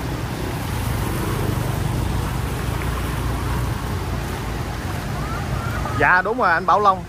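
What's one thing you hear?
Water splashes and swishes under scooter wheels.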